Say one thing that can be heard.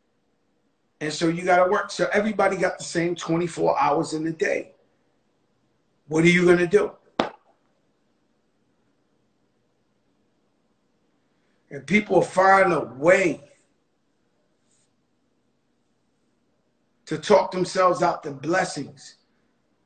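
A middle-aged man speaks into a microphone close up, with animation, in short bursts with pauses.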